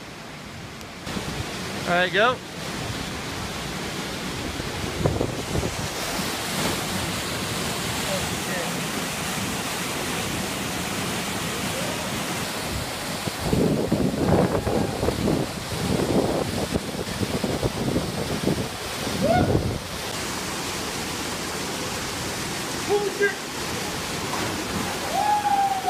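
Water rushes steadily over rocks nearby.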